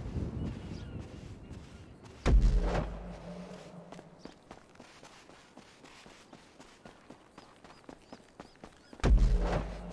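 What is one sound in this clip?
Footsteps crunch slowly on dry ground.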